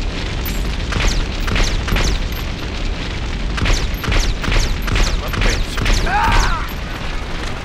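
Pistol shots crack in quick succession.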